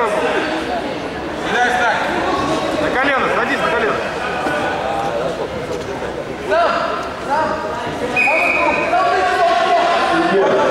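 Many voices of a crowd shout and chatter throughout a large echoing hall.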